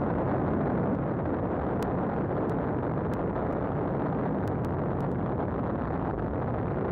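An airship's engines drone steadily.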